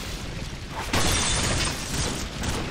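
A gun fires a loud shot that echoes off the walls.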